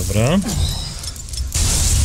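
A revolver's cylinder clicks open during reloading.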